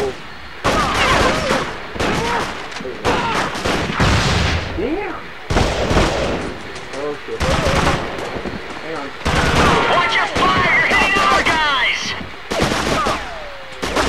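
Rifles fire in short bursts.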